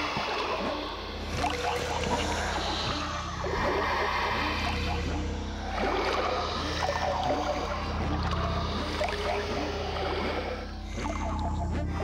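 A magical vortex hums and crackles.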